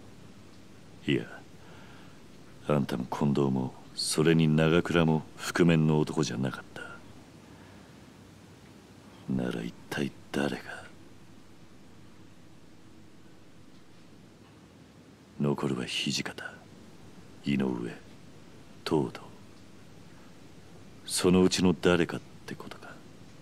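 A man speaks in a low, serious voice, close by.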